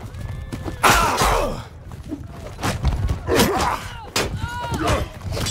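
Swords clang against shields and armour in a fight.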